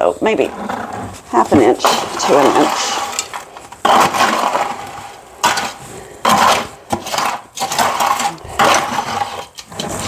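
A plastic bucket thumps and scrapes on a concrete floor.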